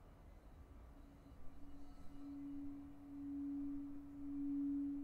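A crystal singing bowl hums with a steady, swelling ring as its rim is rubbed.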